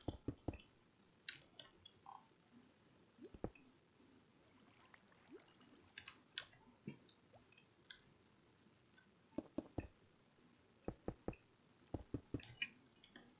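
Short knocks and clicks come in quick bursts.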